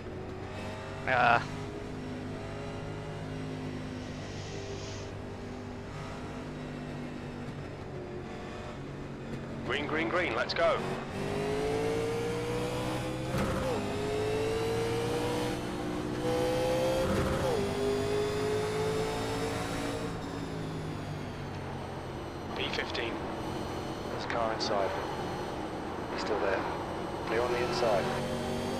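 A racing car engine drones steadily and revs up as the car speeds up.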